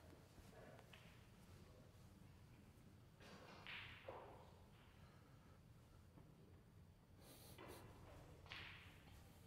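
Footsteps pad softly on a carpeted floor.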